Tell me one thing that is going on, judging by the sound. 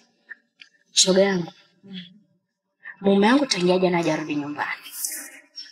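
A second young woman answers in a raised voice.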